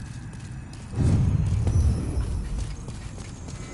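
A deep whoosh and boom swells up and fades.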